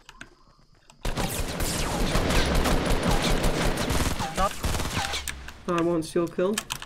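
Footsteps and game sound effects play loudly.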